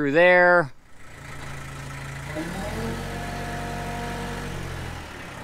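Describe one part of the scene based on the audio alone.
A diesel engine idles with a steady low hum.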